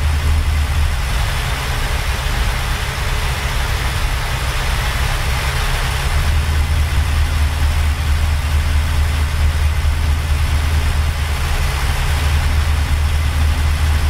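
Tyres roll steadily on a highway.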